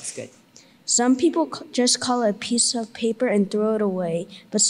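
A young boy reads aloud into a microphone.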